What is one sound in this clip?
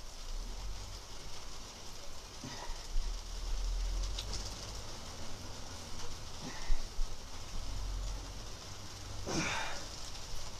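Bedding rustles softly as a person moves about on it.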